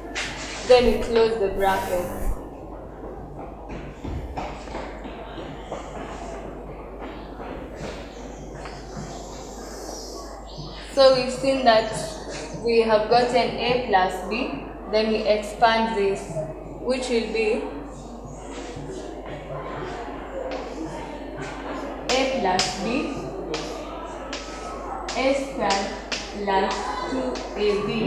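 A young woman speaks calmly nearby, explaining.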